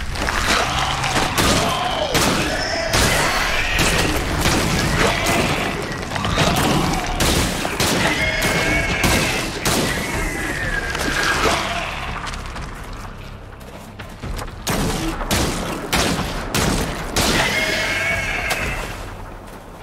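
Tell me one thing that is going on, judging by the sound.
Creatures shriek and screech.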